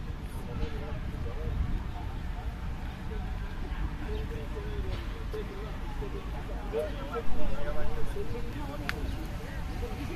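Young men and women chat casually nearby outdoors.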